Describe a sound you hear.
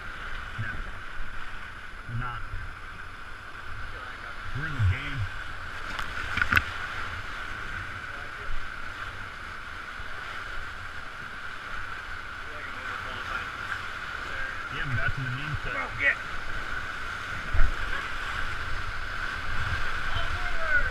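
River rapids rush and roar close by.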